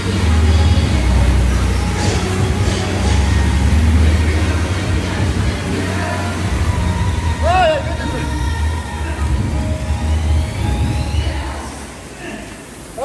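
An air bike's fan whirs loudly, then slows down.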